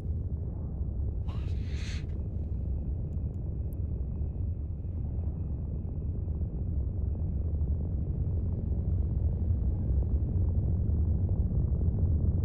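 A spaceship engine hums with a deep, steady rumble.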